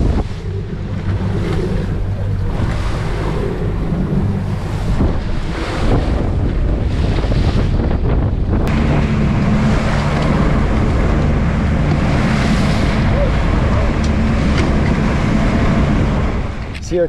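A boat engine drones loudly and steadily.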